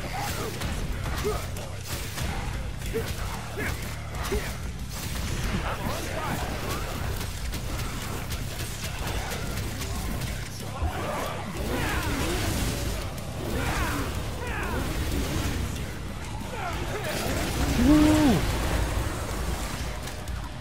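Swords clash and slash in rapid bursts.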